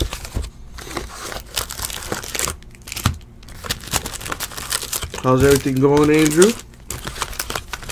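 A cardboard box flap scrapes and rustles.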